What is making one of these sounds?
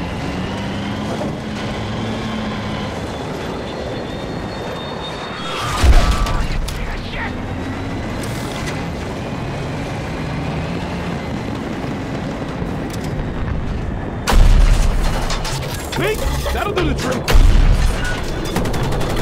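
A tank engine rumbles and its tracks clatter over sand.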